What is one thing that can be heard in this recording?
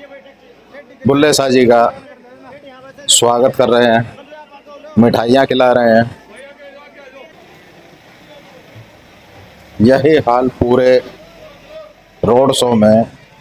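A crowd of men loudly chants slogans in short, repeated bursts.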